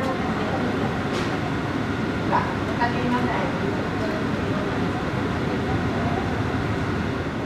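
A parked jet airliner hums and roars steadily nearby, heard through glass.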